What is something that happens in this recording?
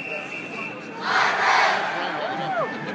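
A crowd bursts into loud cheering.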